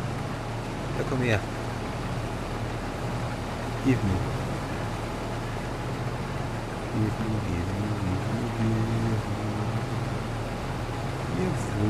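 Grain pours from an unloading auger into a trailer.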